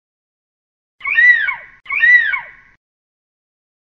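An eagle screeches twice.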